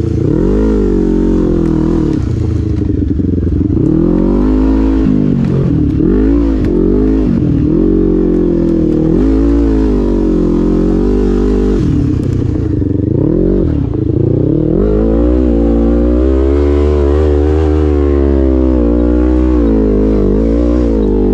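A dirt bike engine revs loudly up and down close by.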